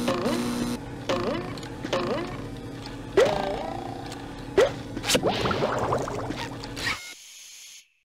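A creature shrieks loudly in a sudden game jumpscare.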